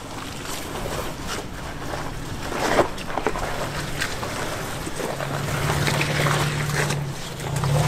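An engine idles and rumbles low as a truck crawls over rocks.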